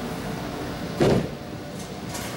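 A bowling ball thuds onto a wooden lane.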